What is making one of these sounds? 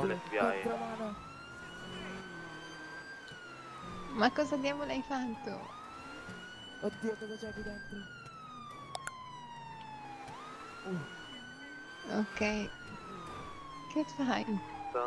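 A police siren wails, rising and falling slowly.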